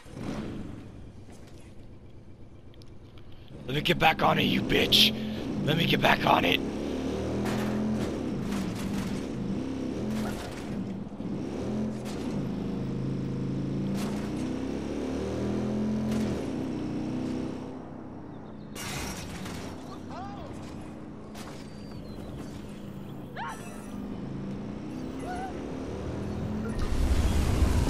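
A motorcycle engine hums and revs as the bike rides along.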